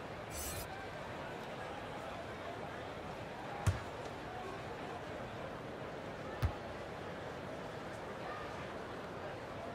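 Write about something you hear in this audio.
A crowd murmurs steadily in a large arena.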